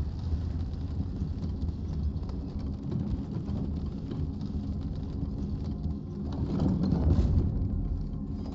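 A wooden lift rumbles and creaks as it descends.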